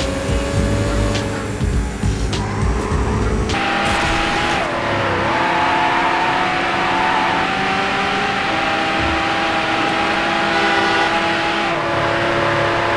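A racing car engine roars at high speed, its pitch shifting as it changes gear.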